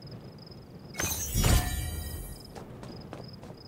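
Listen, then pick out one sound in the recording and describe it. A whooshing chime rings out as a signal post unlocks.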